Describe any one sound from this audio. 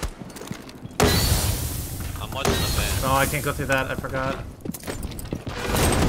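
A smoke grenade bursts and hisses.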